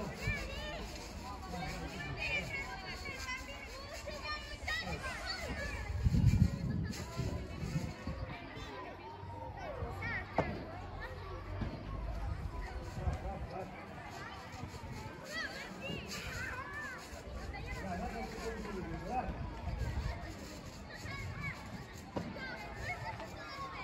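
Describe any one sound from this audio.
Padel rackets hit a ball back and forth with sharp pops.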